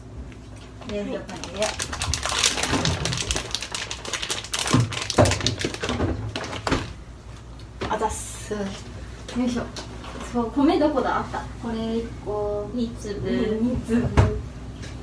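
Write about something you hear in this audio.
A young woman talks close by.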